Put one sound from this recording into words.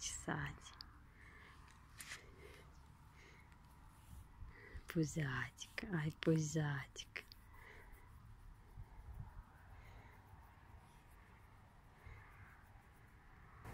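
A hand rubs a puppy's fur with a soft rustle.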